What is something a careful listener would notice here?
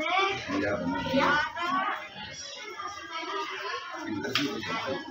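Young children chatter nearby.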